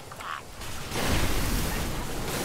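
A fiery explosion bursts with a deep roar.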